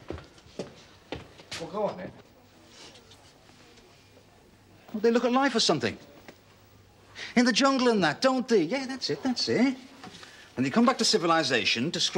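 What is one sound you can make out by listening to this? An older man answers in a flat, dry voice close by.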